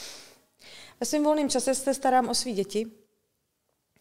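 A woman speaks calmly into a nearby microphone.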